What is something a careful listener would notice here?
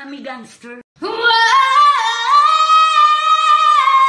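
A woman sings loudly and with feeling.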